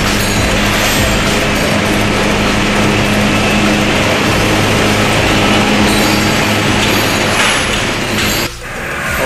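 Sugarcane stalks crash and rustle as they tumble onto a conveyor.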